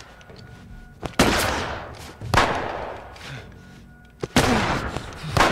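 Gunshots bang loudly and echo through a large hall.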